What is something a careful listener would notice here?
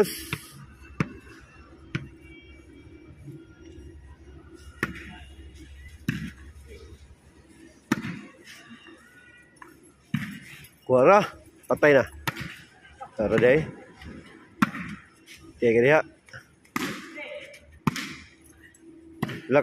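A ball is struck with sharp thuds.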